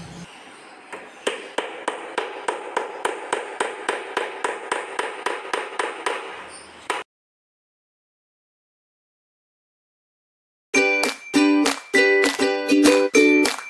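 A hammer taps repeatedly on wood.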